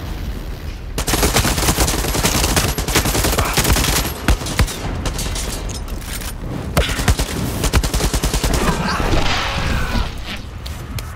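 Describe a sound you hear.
Rapid gunfire blasts loudly and echoes.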